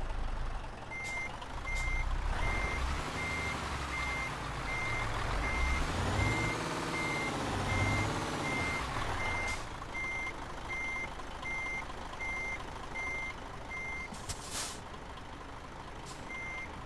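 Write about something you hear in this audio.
A reversing alarm beeps at an even, quick pace.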